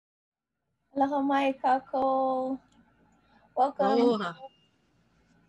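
A woman chants in a steady, drawn-out voice over an online call.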